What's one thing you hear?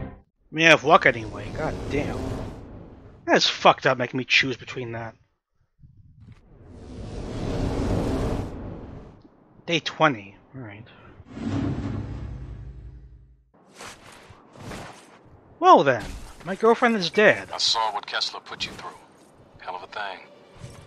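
A man talks with animation, close to a microphone.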